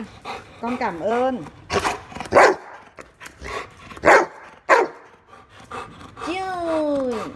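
A dog whines and howls in rising and falling tones.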